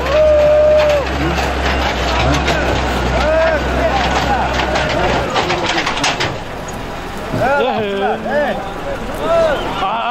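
Men in a crowd shout and call out loudly outdoors.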